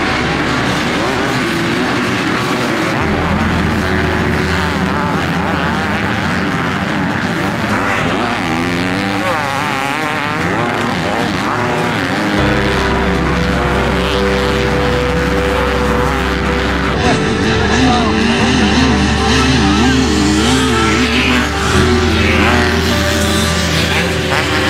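Motorcycle engines roar and rev as dirt bikes race.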